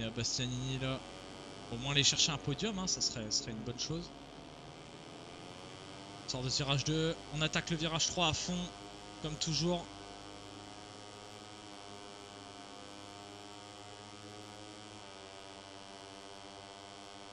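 A racing motorcycle engine roars steadily at high revs.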